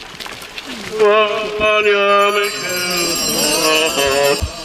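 A crowd of men and women sings a slow hymn together outdoors.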